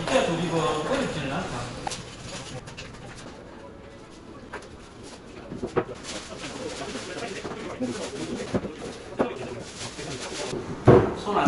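Cardboard boxes scrape and thud as they are moved.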